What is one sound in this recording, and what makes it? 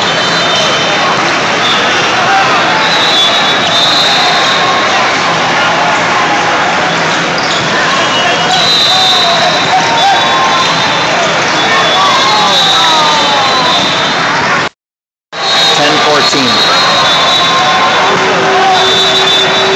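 Teenage boys call out to each other during a volleyball rally.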